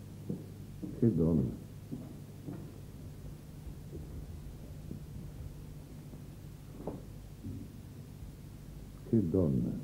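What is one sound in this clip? A man speaks in short, calm phrases nearby.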